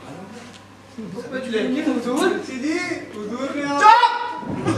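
A man speaks loudly and expressively on a stage, in a room with an echo.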